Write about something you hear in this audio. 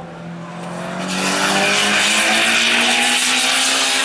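A car engine roars close by as it speeds past.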